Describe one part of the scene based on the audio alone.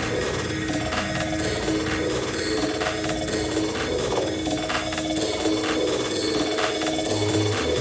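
Electronic dance music plays loudly with a steady beat and repeating melody.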